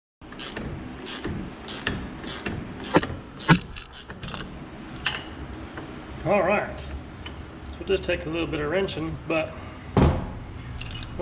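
Metal parts clink and knock as a pulley is worked off a motor shaft.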